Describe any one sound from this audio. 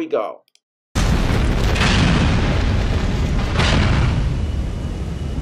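A plane explodes with a loud, deep boom.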